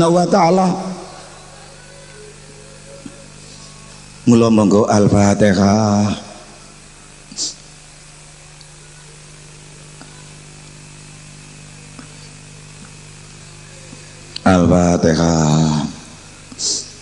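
An elderly man speaks forcefully into a microphone, heard through loudspeakers, in short bursts with pauses.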